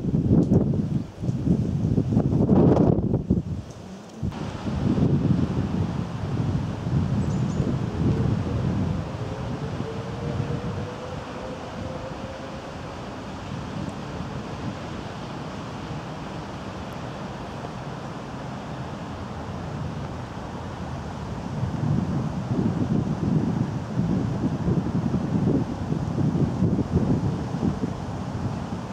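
Wind gusts outdoors, buffeting and rumbling.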